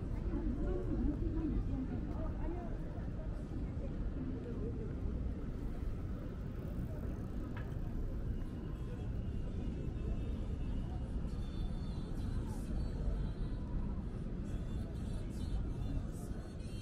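Footsteps of pedestrians patter on pavement.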